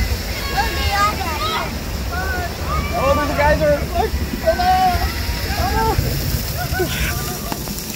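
Water sprays and splashes nearby.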